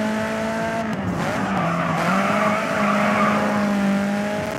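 Tyres screech as a car drifts through a corner.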